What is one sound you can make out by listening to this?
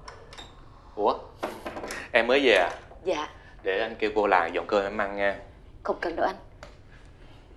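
An older man speaks with animation and laughs.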